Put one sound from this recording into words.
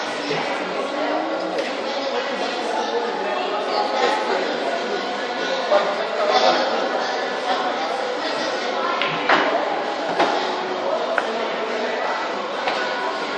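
Several men chatter nearby.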